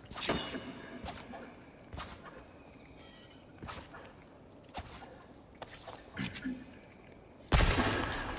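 Footsteps fall on stone.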